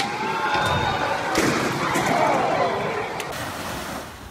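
A go-kart motor whines as the kart skids and spins.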